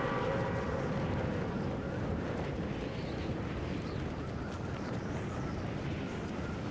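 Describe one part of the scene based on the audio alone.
Wind rushes steadily past a falling skydiver.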